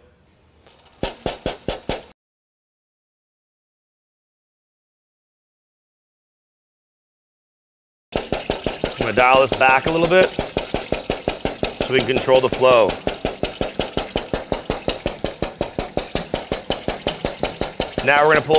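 A pump machine chugs in a fast, steady rhythm.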